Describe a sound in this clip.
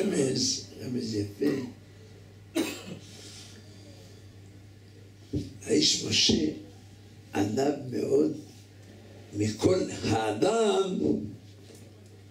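An elderly man speaks with animation into a close microphone, in bursts with pauses.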